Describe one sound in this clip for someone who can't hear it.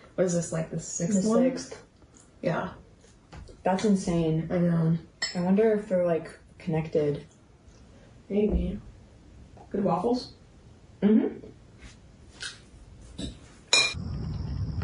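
A second young woman replies calmly nearby.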